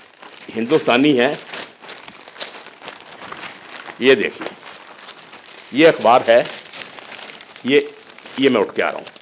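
Newspaper pages rustle and crinkle.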